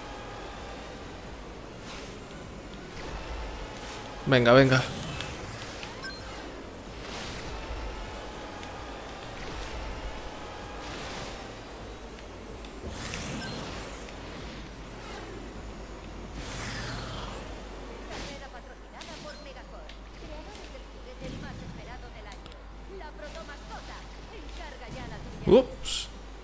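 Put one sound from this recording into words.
A racing hover vehicle's engine whines steadily at speed.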